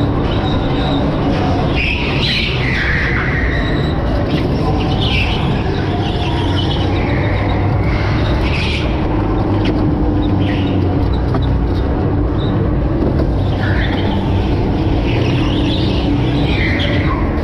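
A go-kart engine whines and hums steadily up close.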